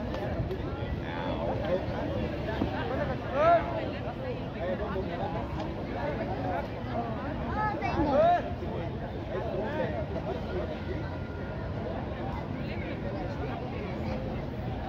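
A small crowd chatters in the background.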